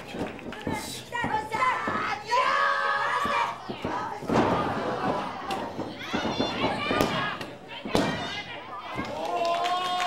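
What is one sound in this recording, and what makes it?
A crowd of spectators shouts and cheers in an indoor hall.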